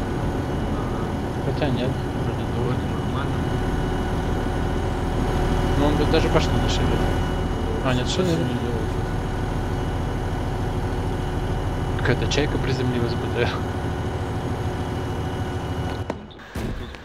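An armoured vehicle's engine idles with a low, steady rumble.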